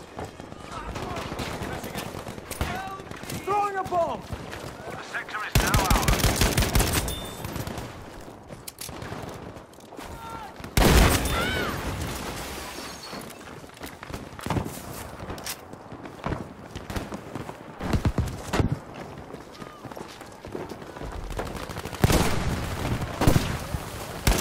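Gunfire and explosions crack and boom.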